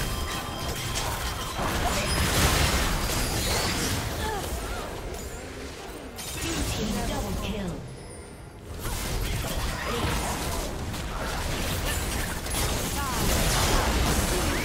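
Game spells crackle and burst in a busy fight.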